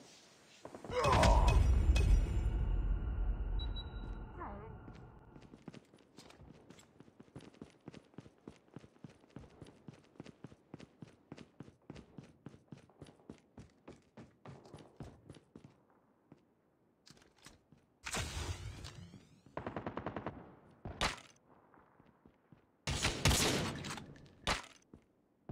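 A sniper rifle fires with a heavy boom.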